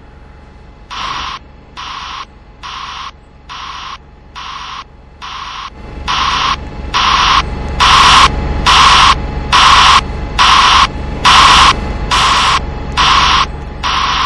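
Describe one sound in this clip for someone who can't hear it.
A bus's warning signal beeps in a steady, repeating rhythm, growing louder.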